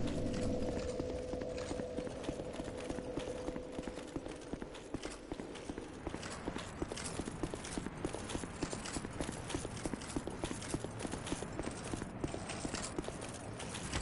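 Armoured footsteps run quickly over stone and snow.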